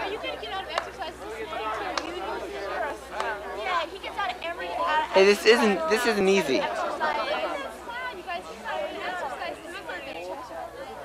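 A crowd of men and women chatter outdoors nearby.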